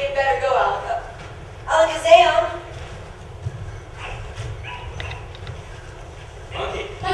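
A woman speaks with animation from a stage in a large hall.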